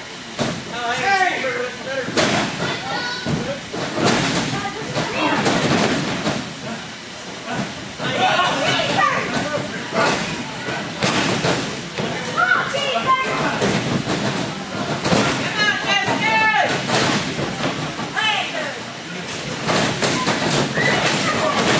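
A small crowd of spectators shouts and cheers in an echoing hall.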